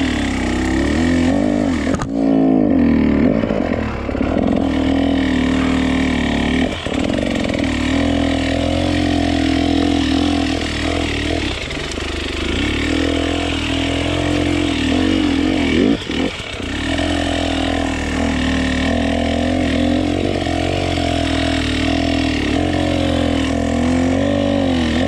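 A dirt bike engine revs up and down close by, loud and throaty.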